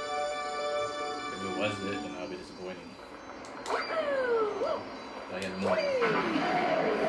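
Video game music plays from a television speaker.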